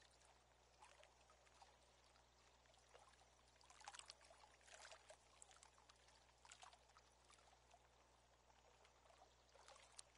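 A fishing reel clicks softly as line winds in.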